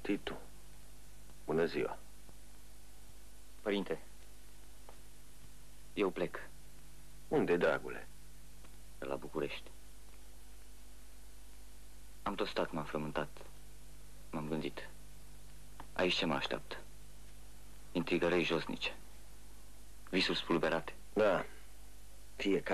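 A man calls out in short, loud phrases.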